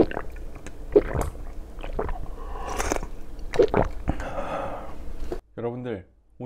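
A young man gulps a drink loudly, close up.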